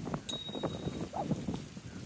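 A bicycle rolls past close by.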